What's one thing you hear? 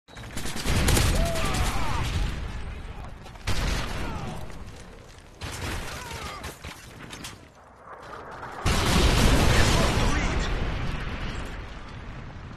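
Gunshots bang loudly and echo away.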